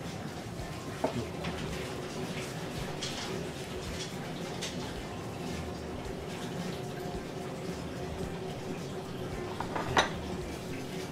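Chopsticks clink against a dish.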